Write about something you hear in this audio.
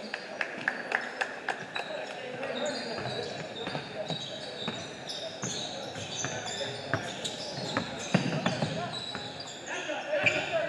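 A basketball bounces repeatedly on a hard floor in a large echoing gym.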